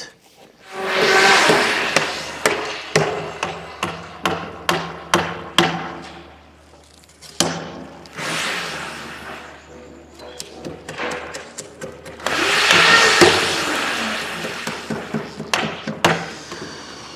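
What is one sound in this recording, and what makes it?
A mallet strikes a chisel into wood in sharp, repeated knocks.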